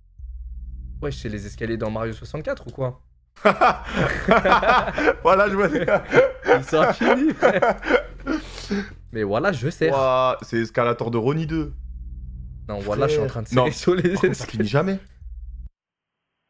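Young men talk and laugh with animation through microphones.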